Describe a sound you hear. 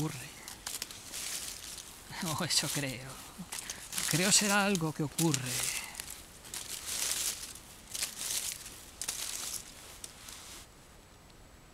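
Dry leaves rustle and crackle as hands rummage through them.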